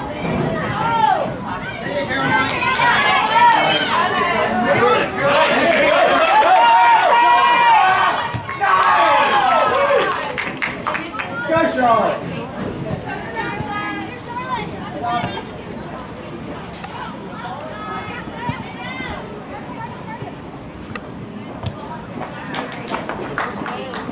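Women and girls nearby talk and call out with animation.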